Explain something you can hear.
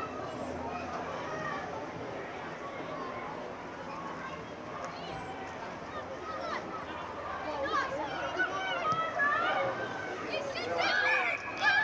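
Young boys shout and call to each other across an open field.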